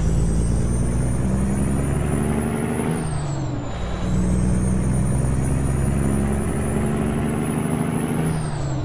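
A truck's diesel engine rumbles steadily, dipping briefly as gears change.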